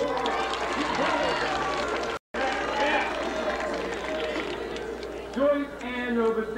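A crowd of young men and women chatter nearby.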